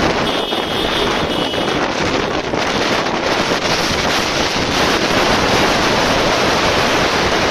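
Wind roars loudly past a moving vehicle.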